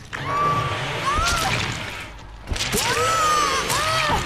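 A young woman screams in pain.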